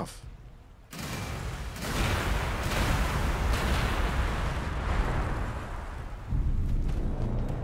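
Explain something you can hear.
Gunfire and explosions rumble in a distant battle.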